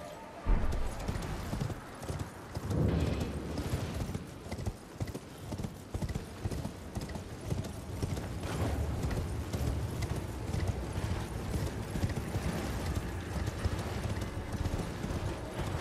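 A horse's hooves gallop steadily over stone.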